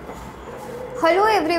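A young woman begins speaking calmly, close by.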